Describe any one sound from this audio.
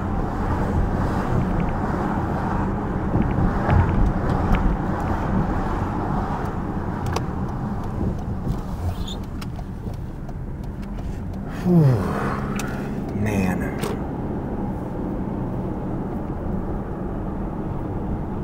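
A car engine hums steadily from inside the car as it drives down a street.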